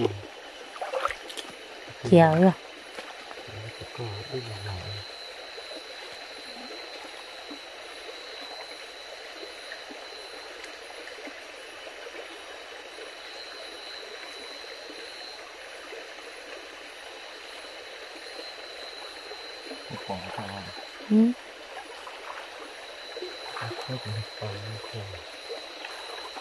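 A shallow stream trickles steadily.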